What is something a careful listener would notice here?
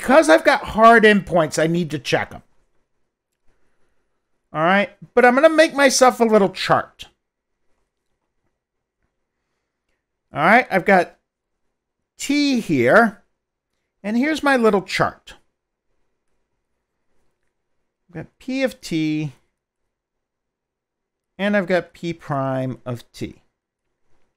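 A middle-aged man lectures in short phrases through a headset microphone.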